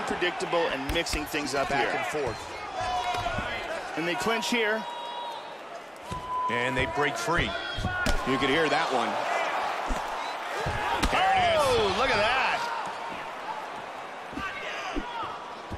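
Punches land with dull thuds.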